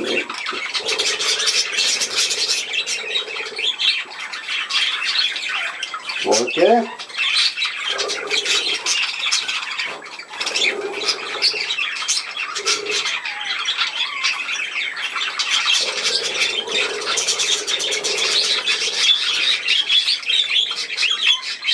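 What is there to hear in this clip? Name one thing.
Many budgies chirp and chatter busily close by.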